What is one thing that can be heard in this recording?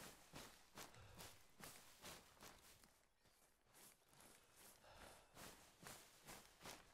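Footsteps crunch and rustle through dry undergrowth at a steady walking pace.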